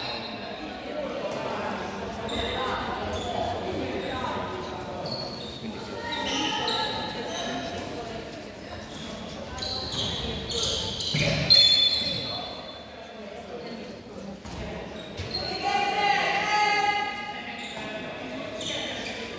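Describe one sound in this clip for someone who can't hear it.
Young players shout and call out across a large echoing hall.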